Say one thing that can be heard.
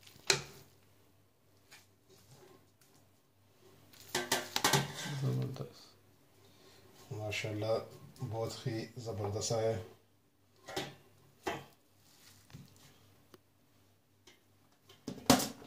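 A metal spoon clinks and scrapes against a metal pot.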